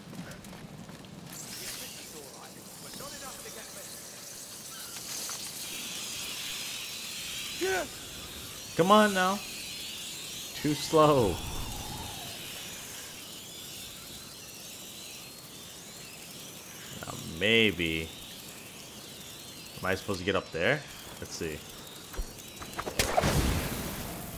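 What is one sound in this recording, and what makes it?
A fire crackles and hisses nearby.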